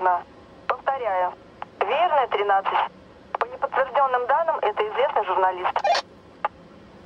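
A young woman speaks calmly into a phone, close by.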